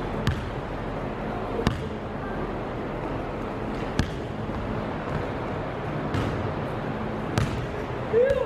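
A basketball bounces on a wooden court in an echoing gym.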